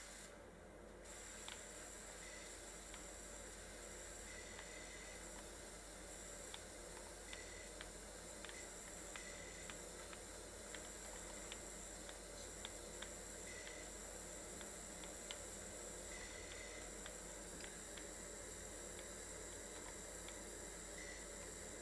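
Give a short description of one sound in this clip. A pressure washer sprays water with a steady hiss.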